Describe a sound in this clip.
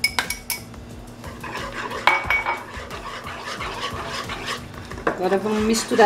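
A wire whisk clinks and scrapes against a bowl while stirring batter.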